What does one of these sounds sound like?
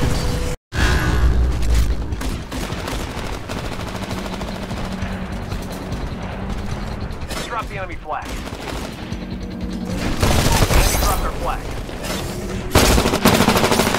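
A rifle fires in short, sharp bursts.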